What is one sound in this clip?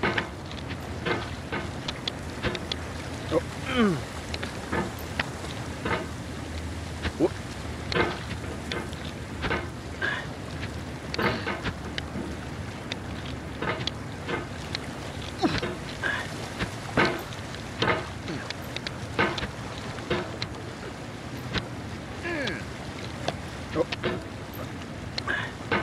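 A metal hammer knocks and scrapes against rock, again and again.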